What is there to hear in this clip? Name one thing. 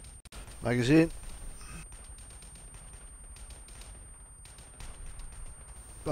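A rifle's bolt clacks as the rifle is reloaded.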